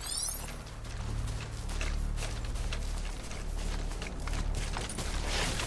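Footsteps crunch on grass and dirt at a steady pace.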